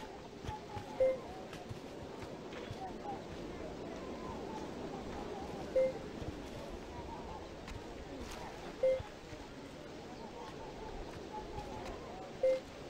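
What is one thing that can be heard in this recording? Short pitched interface beeps sound at intervals.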